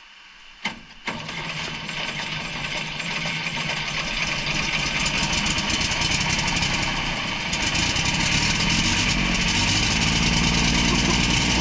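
A large old engine starts up and runs with a loud, steady chugging roar.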